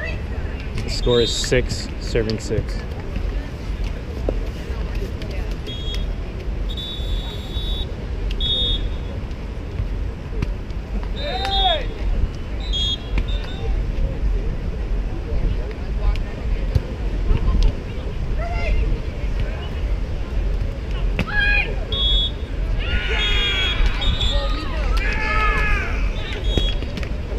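Men call out to each other from a distance.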